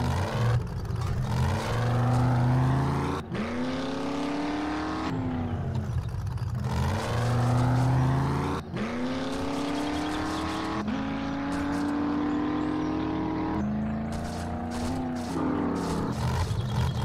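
A truck engine revs hard, rising in pitch and dropping back with each gear change.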